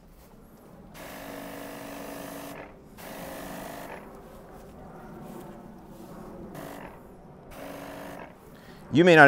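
A garden sprayer hisses in short bursts as it sprays.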